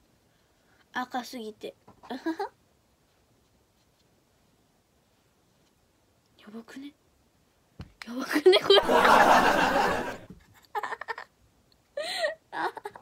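A young girl talks casually close to a microphone.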